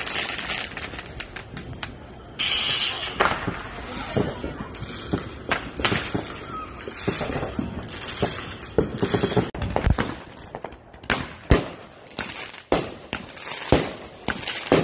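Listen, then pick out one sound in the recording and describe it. Fireworks bang and crackle outdoors, near and far.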